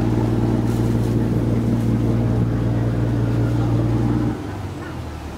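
A boat engine drones with a steady low hum.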